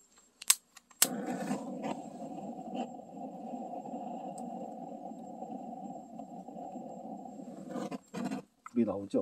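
A power drill whirs steadily into wood.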